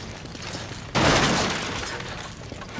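Wooden crates smash and splinter with a loud crash.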